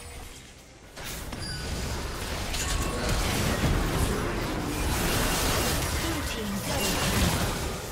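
Game spell effects crackle and boom in a fast fight.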